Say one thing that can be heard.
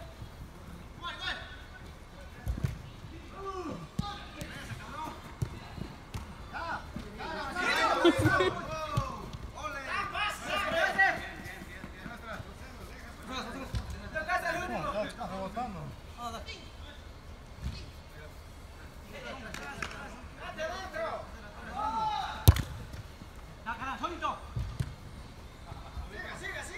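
Young men shout and call out to each other across an echoing indoor hall.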